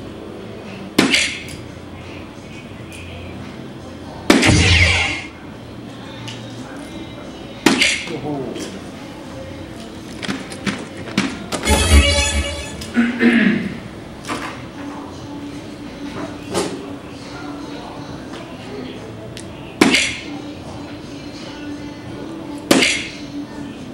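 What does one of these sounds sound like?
Darts thud into an electronic dartboard one at a time.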